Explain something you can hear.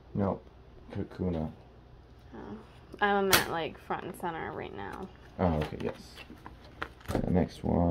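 Plastic binder pages rustle as they are turned.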